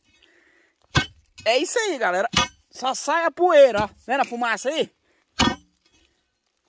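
A stick knocks and scrapes against stones and dry soil.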